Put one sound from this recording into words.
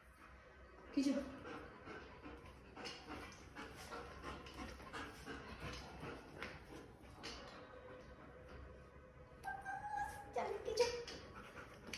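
A dog barks loudly.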